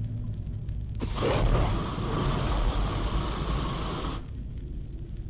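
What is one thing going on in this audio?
A gas torch blasts out a roaring flame.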